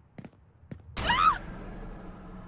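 A creature lets out a sudden, piercing shriek.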